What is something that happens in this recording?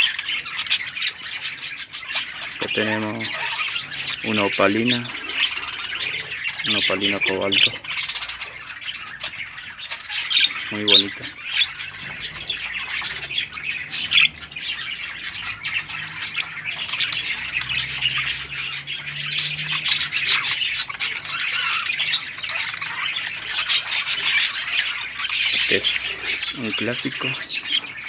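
Baby budgies chirp and squeak shrilly and continuously.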